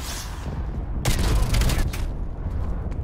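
Rapid gunfire bursts from an automatic rifle.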